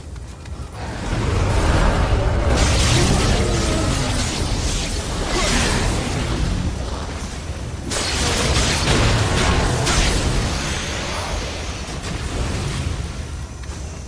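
Swords clash and magic blasts roar in a fierce fight.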